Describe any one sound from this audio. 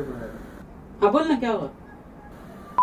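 A young man talks into a phone close by.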